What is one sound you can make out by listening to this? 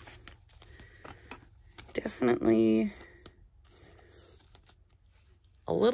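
A card slides into a plastic sleeve with a soft rustle.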